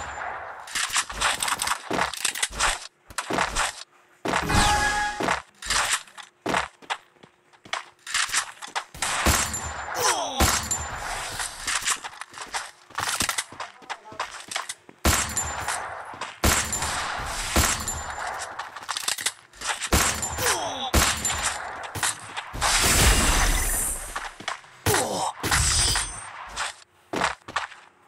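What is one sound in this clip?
Gunshots crack in rapid bursts.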